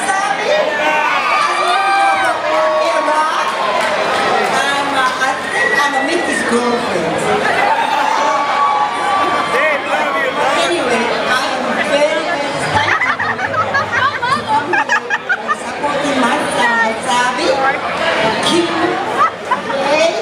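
A woman sings through a microphone over loud amplifiers.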